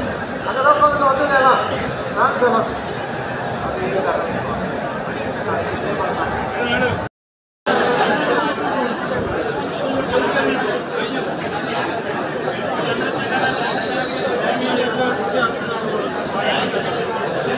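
A large crowd murmurs and chants outdoors.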